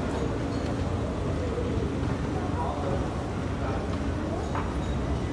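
An escalator rumbles steadily in a large echoing hall.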